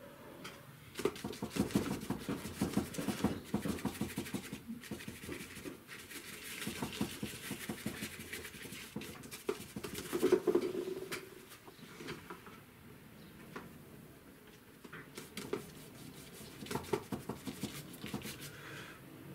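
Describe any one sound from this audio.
A stiff brush scrubs and dabs on paper.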